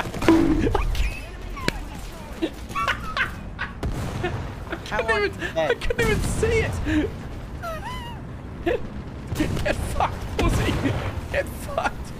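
A young man talks and laughs with animation into a microphone, close by.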